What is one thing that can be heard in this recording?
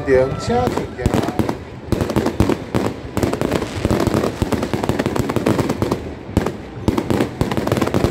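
Firecrackers crackle and bang in rapid bursts.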